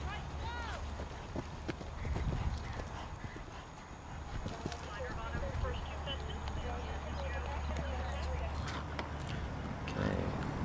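A horse's hooves thud on dry ground at a canter.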